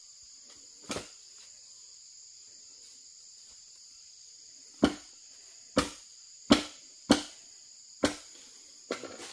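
A blade chops sharply into bamboo, blow after blow, outdoors.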